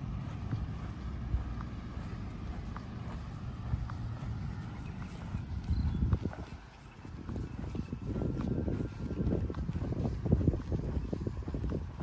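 Deer tear and chew grass nearby.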